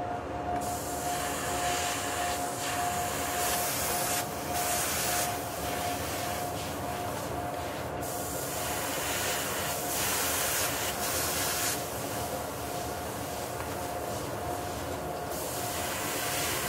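An airbrush hisses in short bursts.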